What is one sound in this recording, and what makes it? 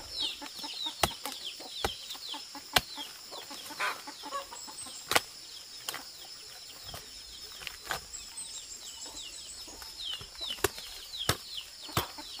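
A knife cuts through tough mushroom stems with sharp snaps.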